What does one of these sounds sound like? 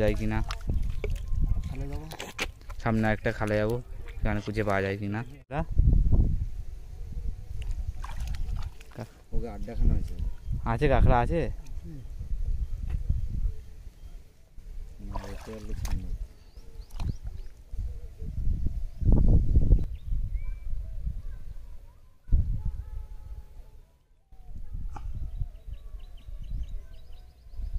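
Wet mud squelches as hands dig into it.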